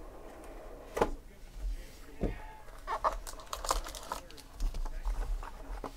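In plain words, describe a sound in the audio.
Cardboard packaging rustles and clacks as hands handle it.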